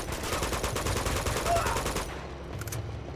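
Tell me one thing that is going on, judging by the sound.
Rapid automatic gunfire rattles loudly.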